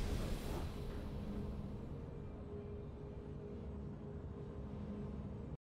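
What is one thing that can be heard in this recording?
Triumphant game music plays with a low, steady hum.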